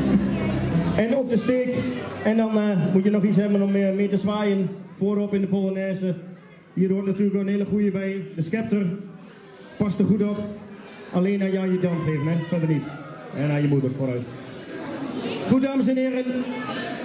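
A young boy speaks loudly into a microphone over loudspeakers.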